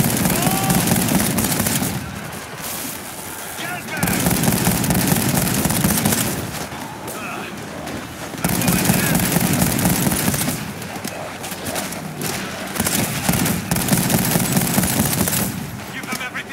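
Rapid bursts of rifle fire ring out loudly.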